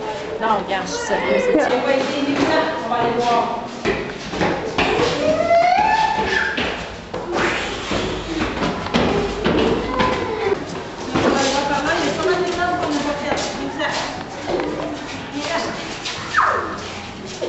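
Children chatter and shout excitedly in an echoing stairwell.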